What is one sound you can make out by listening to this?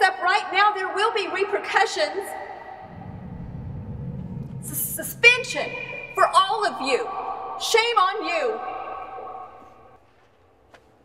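An elderly woman sings.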